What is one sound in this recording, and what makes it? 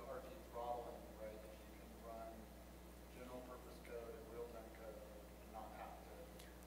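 A man speaks calmly through a microphone.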